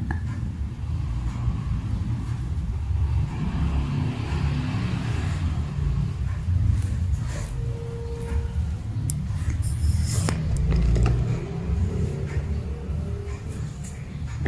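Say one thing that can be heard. A kitten rustles around inside a crinkly fabric tunnel.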